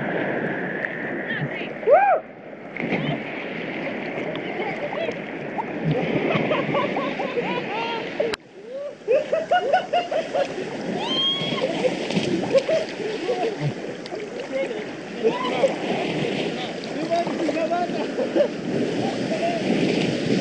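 Waves break against a rock.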